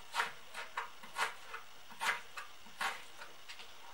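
A knife cuts through raw radish on a cutting board.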